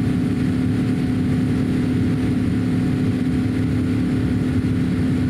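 A jet engine drones loudly and steadily inside an aircraft cabin.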